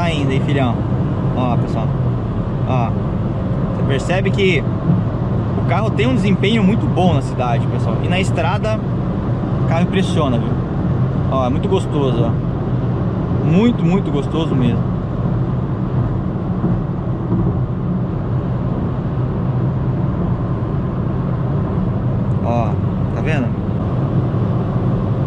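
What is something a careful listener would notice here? Tyres roll over the road with a steady low rumble.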